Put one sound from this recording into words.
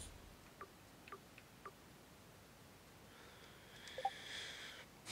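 Short soft electronic blips sound, one after another.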